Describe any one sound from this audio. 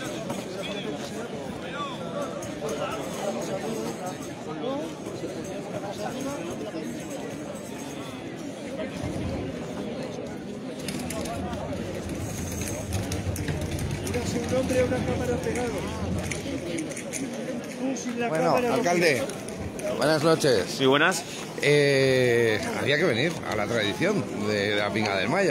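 A crowd chatters and murmurs outdoors.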